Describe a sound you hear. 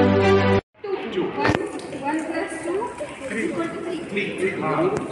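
A group of children chatter.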